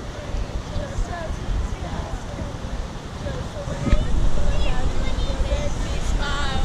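Young women chat and laugh nearby.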